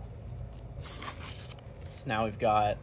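A hook-and-loop strap rips open and presses shut.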